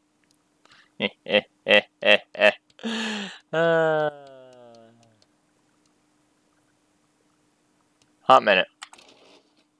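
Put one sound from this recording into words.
Menu sounds click and chime as selections change.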